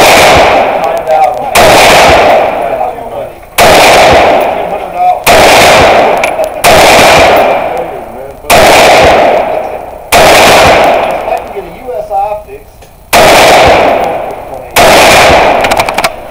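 A rifle fires loud shots, each followed by a ringing echo.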